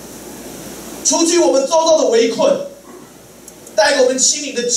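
A middle-aged man speaks forcefully into a microphone, heard through a loudspeaker in a large room.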